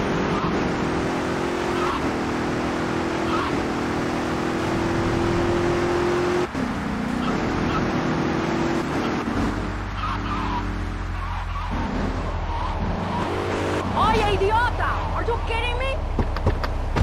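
A car engine hums steadily as a car drives along.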